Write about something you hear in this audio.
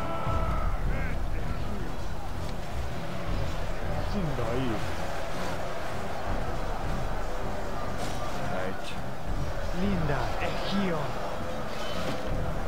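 A large crowd of soldiers shouts and roars in battle.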